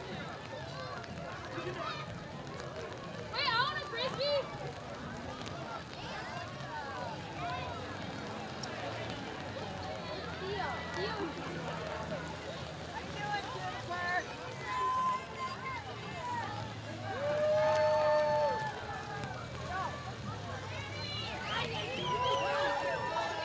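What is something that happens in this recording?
A crowd of men, women and children chatters and calls out outdoors.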